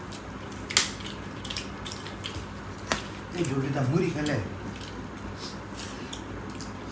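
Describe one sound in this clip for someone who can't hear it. Fingers squelch softly through rice as people eat.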